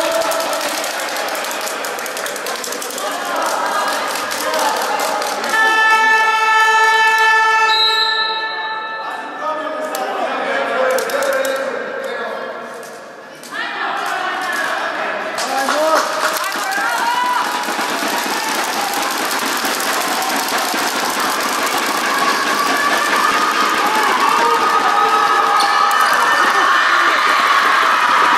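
Young girls shout and call out in a large echoing hall.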